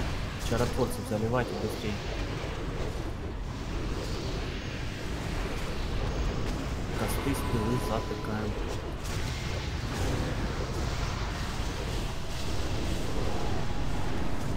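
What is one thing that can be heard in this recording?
Magic spells whoosh and crackle during a fantasy battle.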